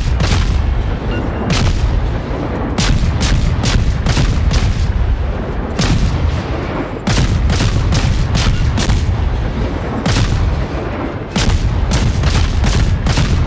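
Naval guns fire in rapid, booming bursts.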